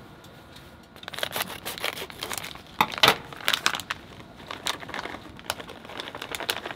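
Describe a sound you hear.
Shredded cheese rustles as it is shaken from a plastic bag.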